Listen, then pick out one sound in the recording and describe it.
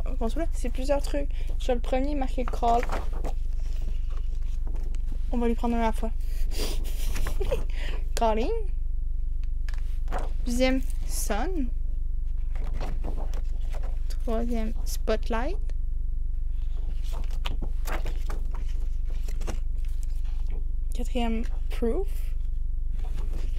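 A plastic bag crinkles and rustles in hands.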